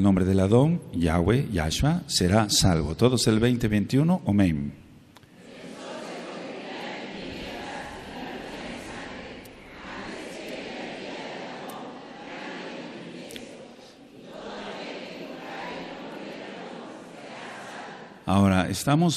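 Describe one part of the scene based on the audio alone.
An elderly man chants loudly into a microphone.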